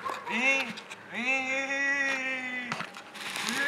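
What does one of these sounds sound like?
A young man shouts a long playful cry.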